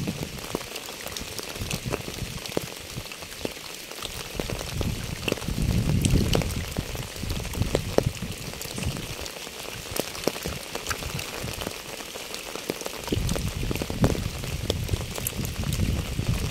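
Raindrops patter steadily on a wet path and puddles.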